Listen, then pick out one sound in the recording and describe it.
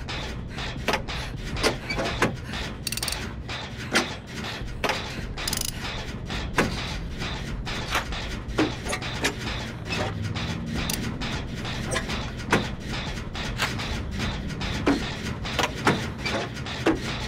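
Metal parts clink and rattle as a machine is repaired by hand.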